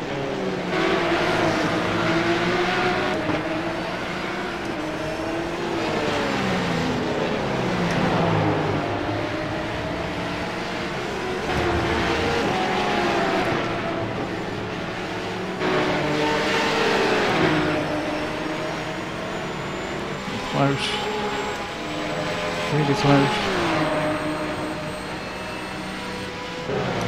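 A race car engine roars, its pitch rising and falling as it shifts gears.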